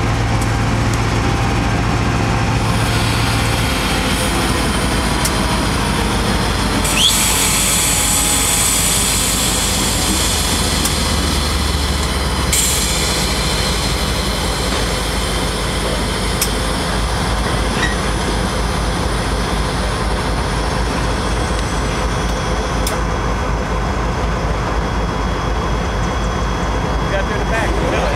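A diesel locomotive engine rumbles and drones steadily close by.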